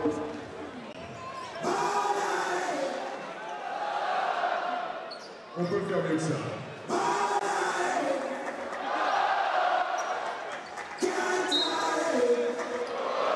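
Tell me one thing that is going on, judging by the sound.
A crowd cheers and chants loudly in a large echoing arena.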